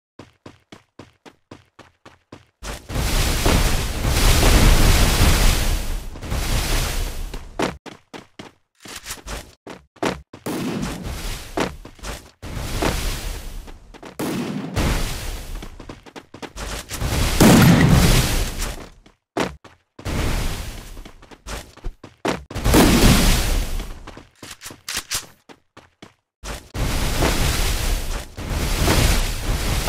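Ice walls burst up with a crackling whoosh, again and again.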